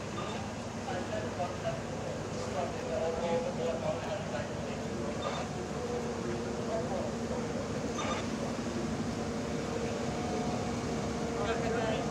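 A heavy fire hose scrapes and drags along the pavement.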